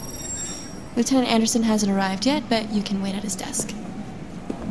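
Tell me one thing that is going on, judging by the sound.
A young woman speaks calmly and politely.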